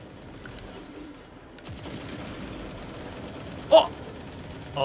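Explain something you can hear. A gun fires short bursts.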